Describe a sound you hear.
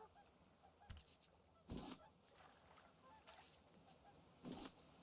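Short game menu clicks sound as items are moved in an inventory.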